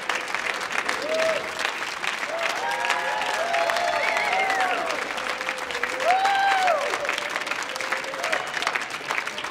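People in an audience cheer and whistle.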